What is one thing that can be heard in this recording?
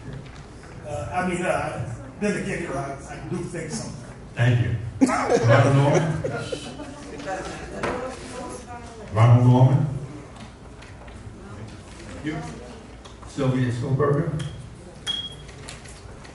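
An elderly man speaks into a microphone over a loudspeaker in an echoing room.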